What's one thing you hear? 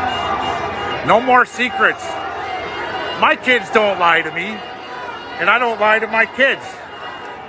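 A crowd of men and women chants loudly in bursts nearby.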